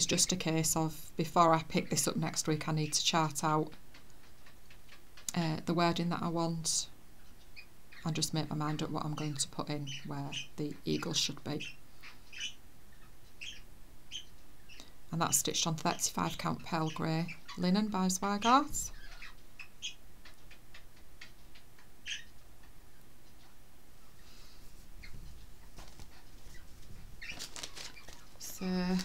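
A middle-aged woman talks calmly and close by, with pauses.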